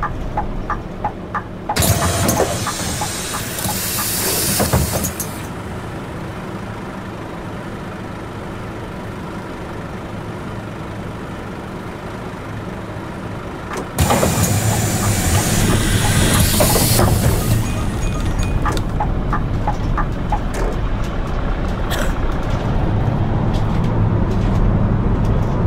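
A bus engine hums steadily while driving.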